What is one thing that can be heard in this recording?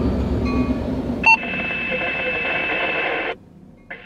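A locomotive rumbles past close by.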